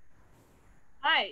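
A young woman exclaims loudly over an online call.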